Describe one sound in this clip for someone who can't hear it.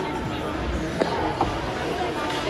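A hockey puck cracks against sticks and the boards.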